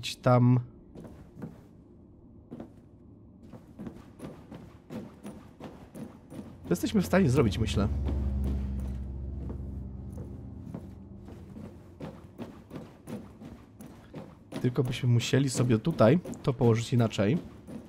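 Footsteps tap quickly on a hard metal floor.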